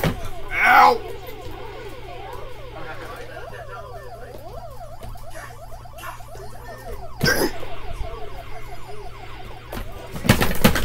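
An arcade game plays warbling, chirping electronic tones through a television speaker.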